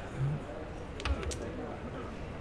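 A carrom striker clicks sharply against a disc on a wooden board.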